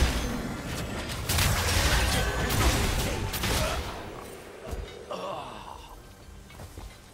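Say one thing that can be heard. Magic spells whoosh, crackle and burst in a rapid, noisy fight.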